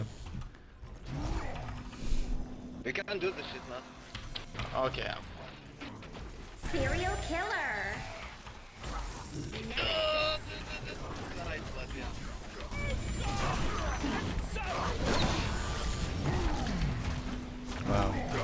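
Spell effects whoosh and crackle.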